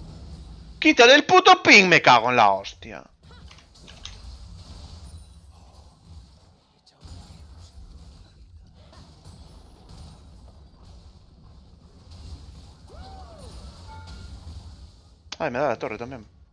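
Game spell effects and hits crackle and thump during a battle.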